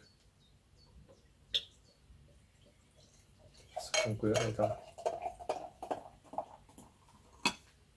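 Beer pours into a glass and fizzes.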